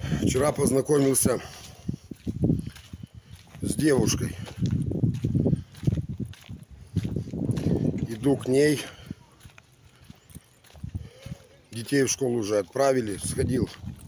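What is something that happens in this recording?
A middle-aged man talks calmly and close up, pausing between phrases.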